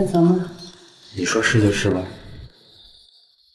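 A young man answers calmly, close by.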